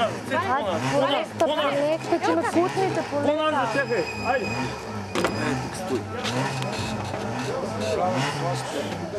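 Men talk nearby among a crowd outdoors.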